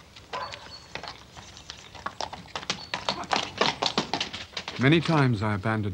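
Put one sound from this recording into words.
Horse hooves clop on gravel.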